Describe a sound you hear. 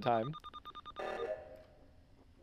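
A short electronic chime rings.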